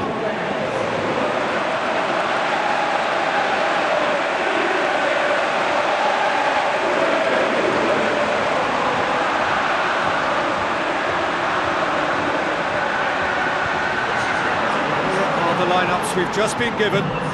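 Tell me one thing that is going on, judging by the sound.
A huge stadium crowd sings and chants loudly throughout.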